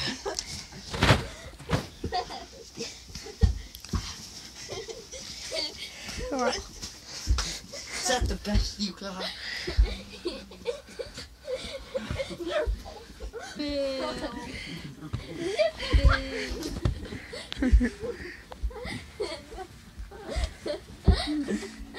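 Young boys shout and talk excitedly close by.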